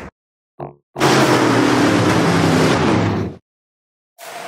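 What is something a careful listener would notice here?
Racing car engines roar loudly as a pack of cars goes by.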